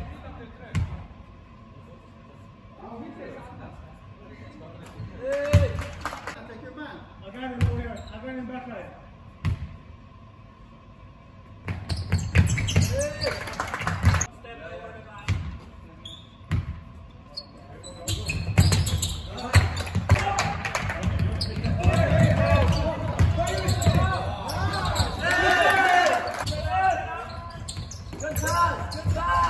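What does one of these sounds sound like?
A basketball bounces on the floor in a large echoing hall.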